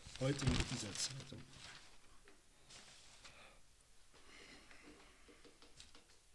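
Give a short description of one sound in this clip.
A man speaks close to a microphone.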